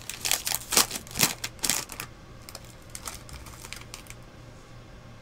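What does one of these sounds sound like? A foil wrapper crinkles and tears in someone's hands.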